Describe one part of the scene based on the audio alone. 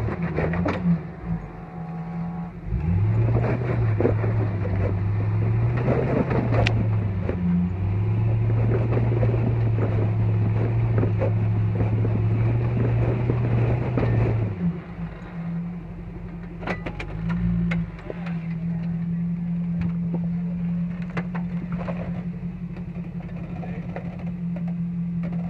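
A Jeep SUV engine revs under load as it crawls up a steep rocky climb.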